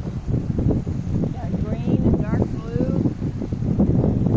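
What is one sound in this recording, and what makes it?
Small waves lap against a gravel lakeshore.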